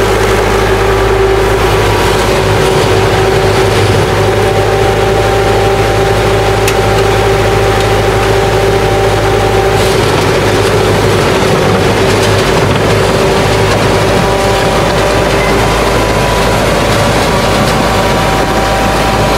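An old engine chugs and rumbles steadily close by.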